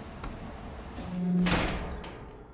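A heavy door slides open with a whoosh.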